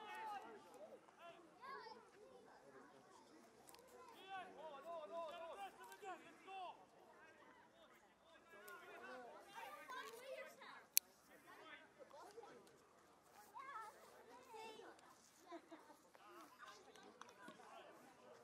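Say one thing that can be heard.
A crowd of adult spectators talks and calls out nearby, outdoors.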